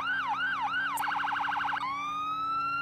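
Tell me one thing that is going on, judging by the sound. A police siren switches to a rapid yelp.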